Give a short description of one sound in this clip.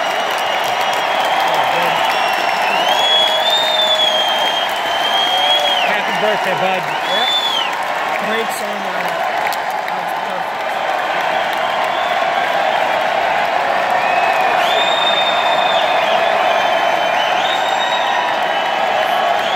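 A rock band plays loudly through a big sound system.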